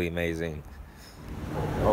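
A young man speaks casually close to a phone microphone.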